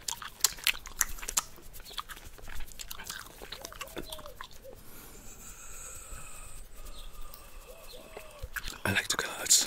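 Hands make crisp tapping and brushing sounds close to a microphone.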